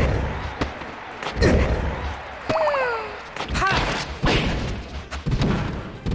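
Fighting game sound effects of hits, jumps and whooshes play in quick bursts.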